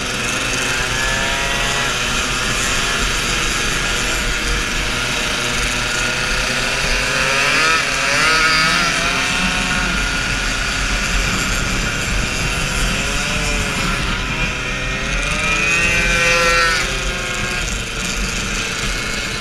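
Scooter engines buzz loudly, revving up and down.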